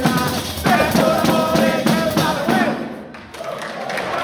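Frame drums beat a lively rhythm.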